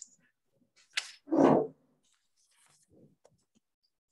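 Paper rustles as pages are turned.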